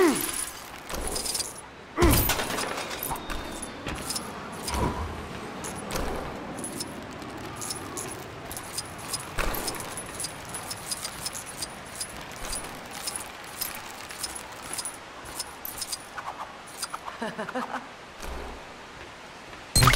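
Small coins tinkle and jingle as they are picked up.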